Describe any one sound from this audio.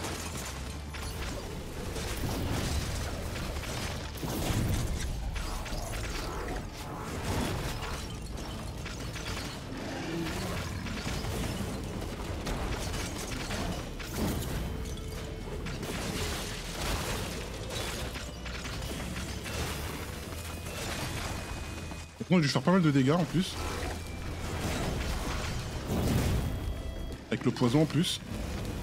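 Video game battle sounds of blasts and shattering ice play throughout.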